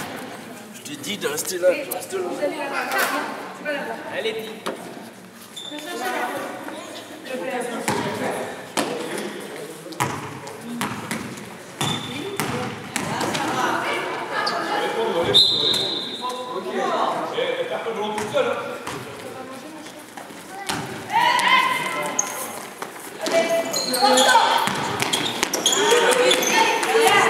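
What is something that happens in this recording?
Young women and spectators call out in a large echoing hall.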